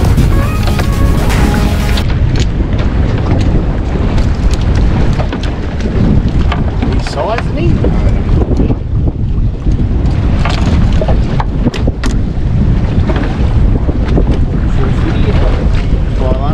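Water slaps against a boat's hull.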